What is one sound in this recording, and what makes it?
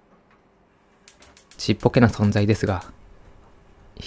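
A gas stove clicks as it is lit.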